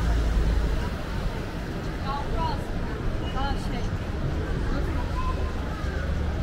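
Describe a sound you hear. A busy street crowd murmurs outdoors.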